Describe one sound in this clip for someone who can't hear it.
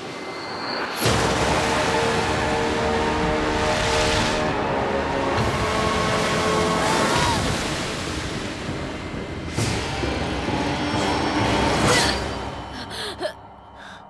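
A huge wave of water roars and crashes.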